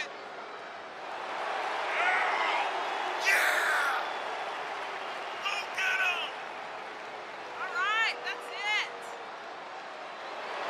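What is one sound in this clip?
A large crowd cheers and whistles in a big arena.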